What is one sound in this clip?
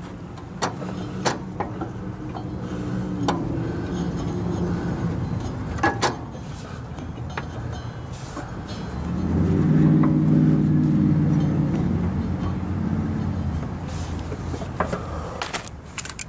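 A riding mower's engine idles with a steady low hum.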